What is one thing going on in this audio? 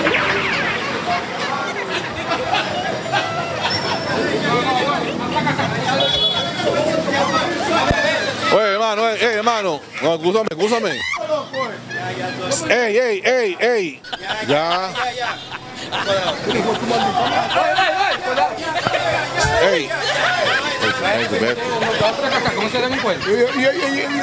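Men talk loudly and excitedly close by, outdoors.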